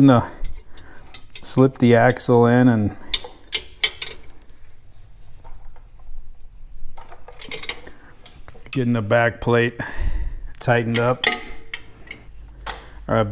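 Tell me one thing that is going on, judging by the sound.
Metal tools clank and knock against metal parts.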